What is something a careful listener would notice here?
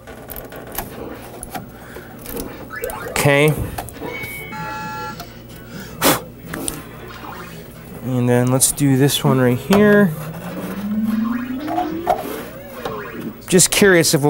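Circuit boards scrape and click as they slide in and out of a metal rack.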